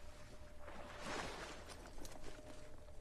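A person lands with a thud on the ground.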